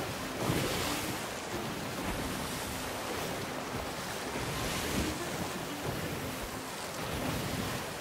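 Rough waves crash and surge against a ship's hull.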